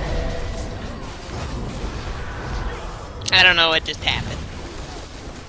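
Magic spells crackle and boom in a fierce battle.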